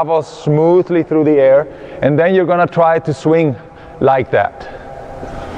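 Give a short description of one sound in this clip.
A man speaks calmly and clearly close by, in an echoing hall.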